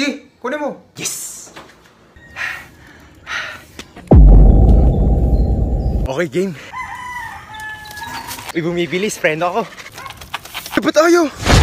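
A young man talks with animation close by.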